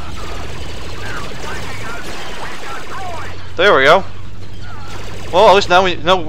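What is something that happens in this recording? Laser blasters fire in rapid zapping bursts.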